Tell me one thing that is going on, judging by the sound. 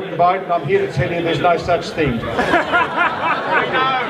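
An older man speaks into a microphone through a loudspeaker.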